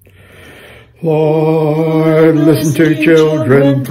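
An elderly man speaks close to a microphone, steadily and with emphasis.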